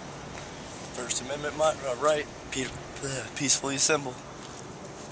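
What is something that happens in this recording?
A man speaks loudly close by.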